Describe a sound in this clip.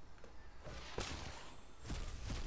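A game's spell effect flashes with a bright whoosh and chime.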